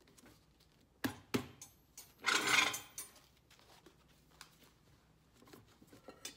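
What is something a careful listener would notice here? Sharp knocks and taps sound against a boot.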